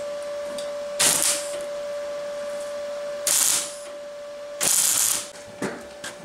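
An electric welder crackles and hisses in short bursts.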